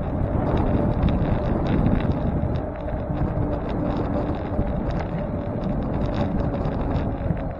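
Wind buffets the microphone loudly.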